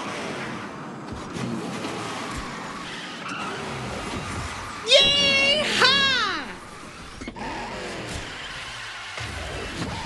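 A kart engine hums steadily as it races along.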